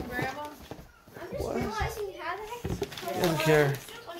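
Wrapping paper crinkles as it is handled.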